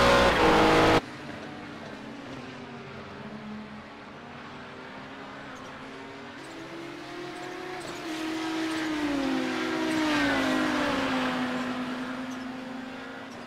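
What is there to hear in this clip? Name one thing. Race car engines drone in the distance and grow louder as the cars pass.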